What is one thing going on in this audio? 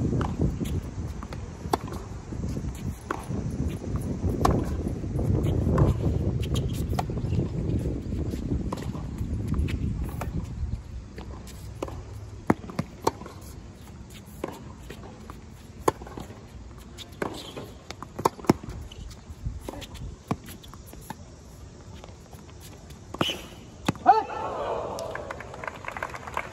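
Tennis balls pop sharply off rackets in a rally.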